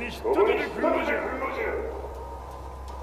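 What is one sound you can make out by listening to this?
An elderly man speaks harshly and angrily, close by.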